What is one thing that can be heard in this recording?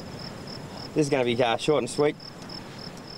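A man speaks briefly outdoors.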